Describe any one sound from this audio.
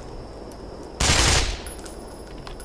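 An assault rifle fires a single shot.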